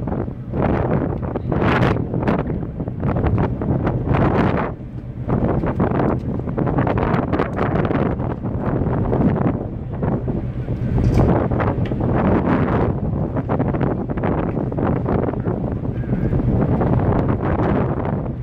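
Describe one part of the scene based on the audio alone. Strong wind rushes and buffets in gusts outdoors.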